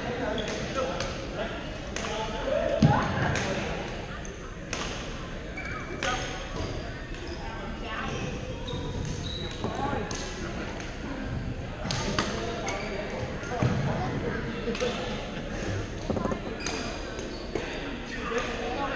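Players call out and chatter across a large echoing hall.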